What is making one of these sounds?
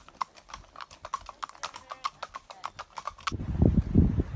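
Horse hooves clop steadily on a paved road.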